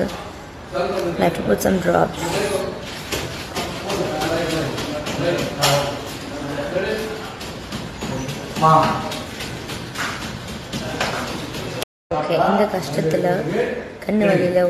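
A young woman speaks expressively close to a microphone.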